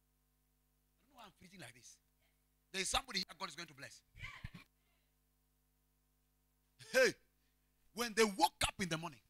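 A man preaches with passion into a microphone, his voice booming through loudspeakers.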